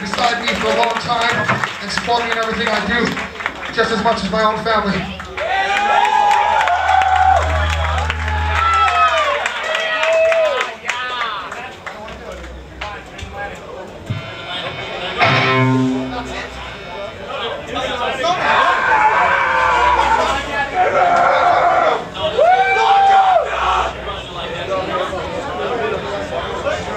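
A live rock band plays loudly in an echoing room.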